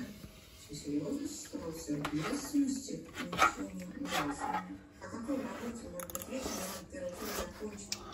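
A fork scrapes against a baking tray.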